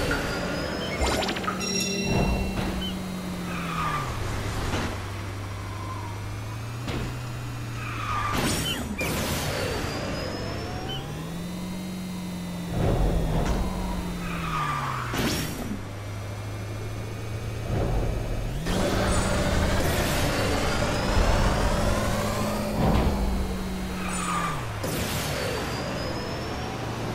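A small racing kart engine drones, its pitch rising and falling with speed.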